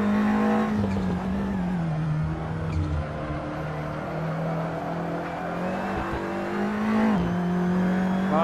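A racing car engine drones steadily, its pitch rising and falling as the car shifts gears.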